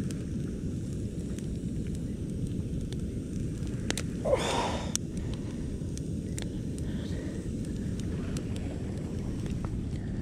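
Dry twigs rustle and scrape as they are moved.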